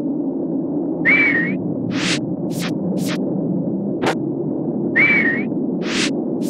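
Video game sound effects chirp and whoosh.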